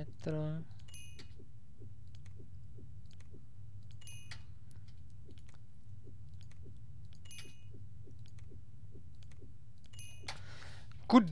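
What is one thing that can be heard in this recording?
Short game menu chimes ring out now and then.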